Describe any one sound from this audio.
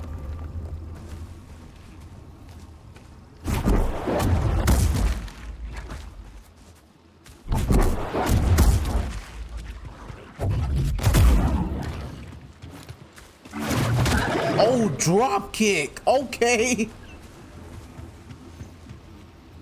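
A laser sword hums and swooshes through the air.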